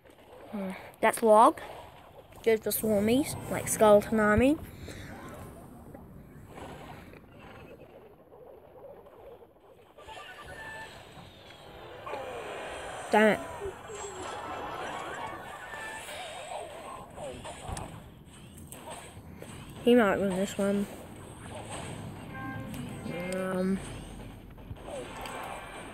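Cartoon battle sound effects clash and pop in a video game.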